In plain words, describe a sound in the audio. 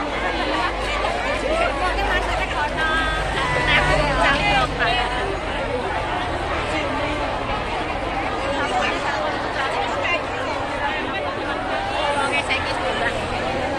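A crowd of women chatter loudly all around, close by.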